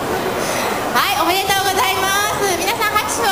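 A young woman sings into a microphone, heard through loudspeakers in a large echoing hall.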